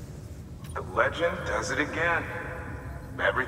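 A man speaks calmly over a radio.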